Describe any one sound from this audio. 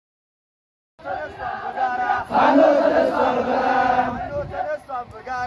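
A large crowd of young people sings together outdoors.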